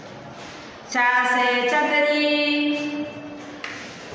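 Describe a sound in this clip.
A woman speaks close by in a slow, drawn-out, sing-song voice.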